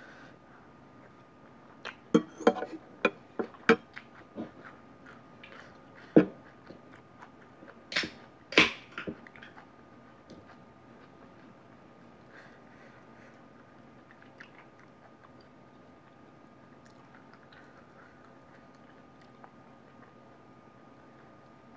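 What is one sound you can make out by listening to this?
A woman chews food close by with wet smacking sounds.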